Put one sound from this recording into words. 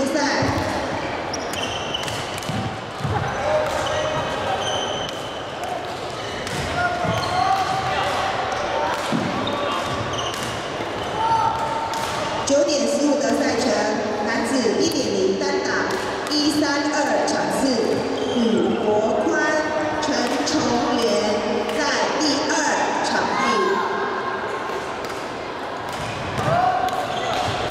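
Many young people chatter in the background.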